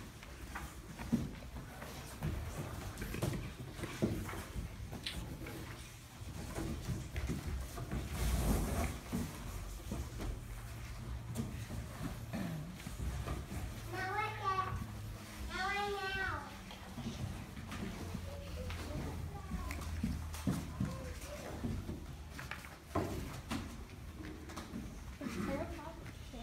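Cardboard boxes scrape, thump and rustle as they are moved and stacked.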